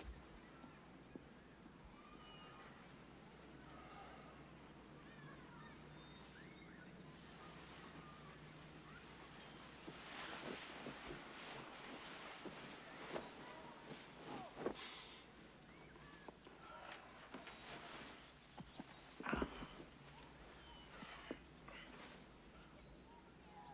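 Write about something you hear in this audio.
A small caged bird chirps softly.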